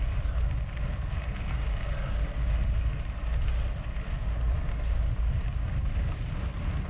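Wind buffets loudly and steadily against a moving bicycle.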